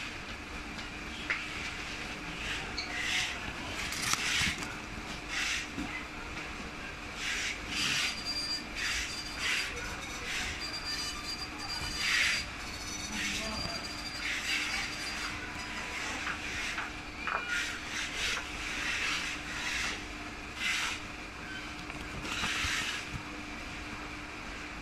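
A sheet of paper rustles and crinkles as it is handled.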